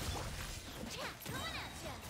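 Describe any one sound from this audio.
A loud blast booms.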